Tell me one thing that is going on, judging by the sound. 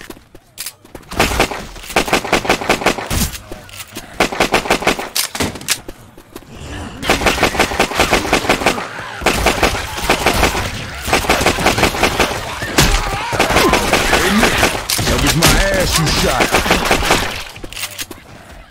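A gun fires in rapid bursts of loud shots.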